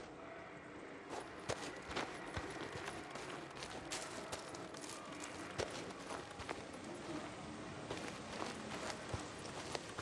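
Footsteps crunch through dry grass and brush.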